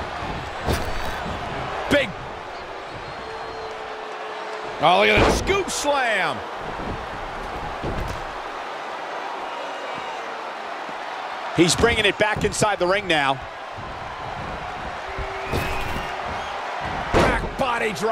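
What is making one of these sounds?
Heavy bodies thud onto a wrestling ring mat.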